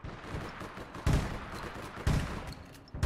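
Gunshots fire in sharp bursts.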